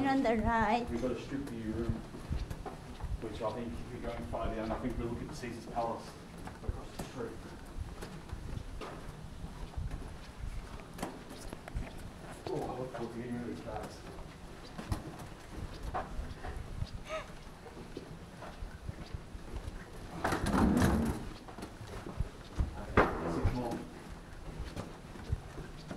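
Footsteps thud softly on carpet.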